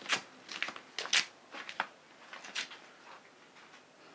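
Grain rustles and swishes in a woven basket as a woman shakes it.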